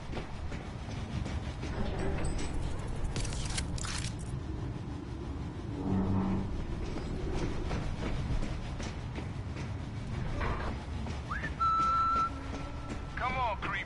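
Footsteps clatter on a metal walkway.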